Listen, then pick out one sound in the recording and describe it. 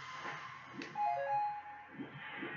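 A video game chime rings out in a few quick bright notes.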